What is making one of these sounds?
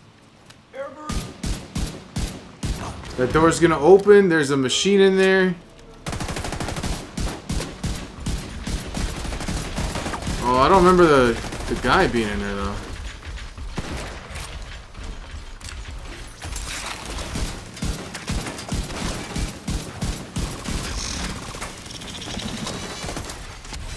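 Guns fire in rapid bursts of shots.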